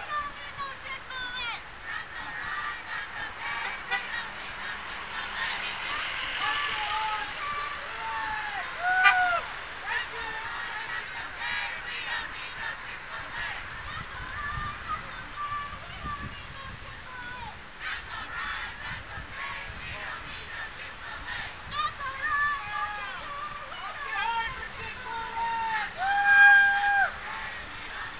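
A crowd of protesters chants and shouts in the distance, outdoors.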